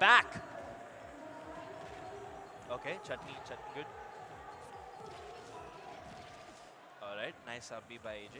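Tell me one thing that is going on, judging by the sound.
Game punches and kicks land with sharp smacks and bursts.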